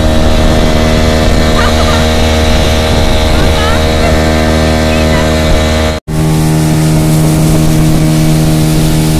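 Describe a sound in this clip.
An outboard motor drones loudly and steadily.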